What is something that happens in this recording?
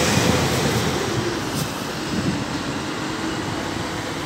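A bus engine rumbles close by.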